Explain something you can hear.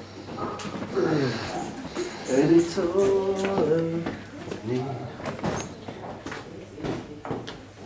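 Footsteps scrape and tap on rocky ground.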